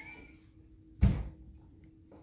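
A dish is set down with a soft knock.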